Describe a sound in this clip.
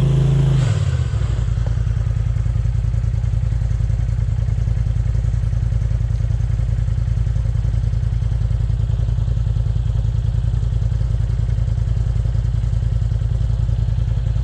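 An off-road vehicle's engine idles with a low, steady rumble.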